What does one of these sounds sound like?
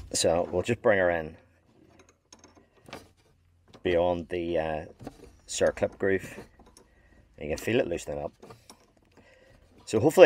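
A ratchet wrench clicks as it turns a bolt.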